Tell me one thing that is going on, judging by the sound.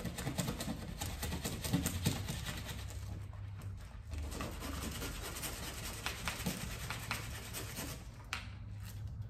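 A gloved hand scrubs along a wall's edge with a soft rubbing sound.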